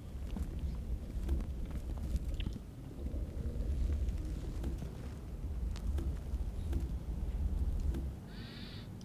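Blows knock repeatedly against stone.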